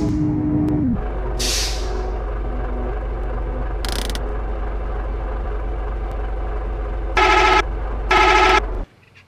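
A bus engine idles steadily.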